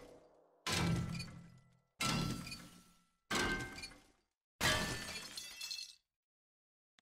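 A metal wrench bangs against a wooden workbench.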